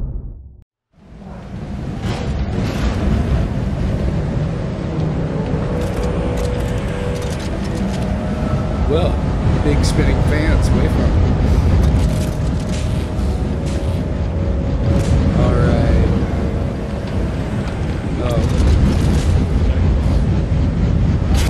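Machinery hums in a low, steady drone.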